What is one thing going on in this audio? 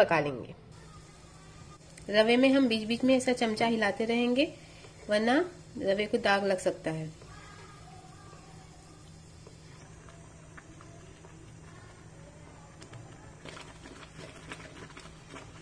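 Liquid bubbles and simmers in a pot.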